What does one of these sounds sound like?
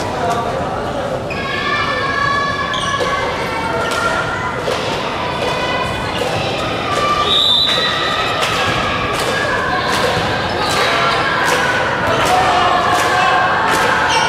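A ball bounces on a wooden floor.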